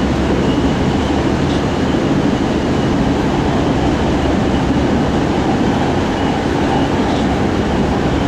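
A train rumbles and roars steadily along the tracks.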